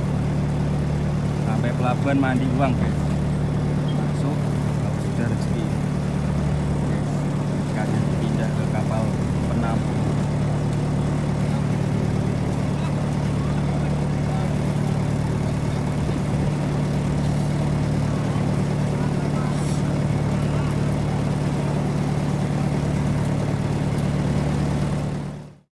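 A boat's diesel engine hums steadily throughout.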